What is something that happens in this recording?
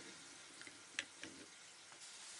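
A plastic clip clicks against a glass jar.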